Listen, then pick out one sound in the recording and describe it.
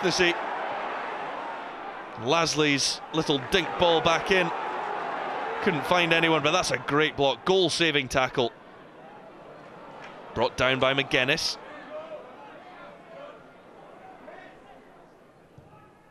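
A stadium crowd roars and murmurs loudly, then quiets down.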